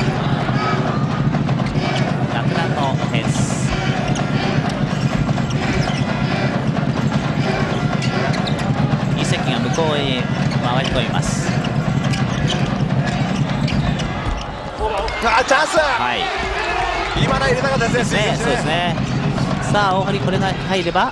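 A large crowd in an echoing arena cheers and chants steadily.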